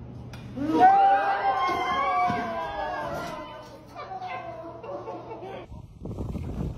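A woman shouts excitedly nearby.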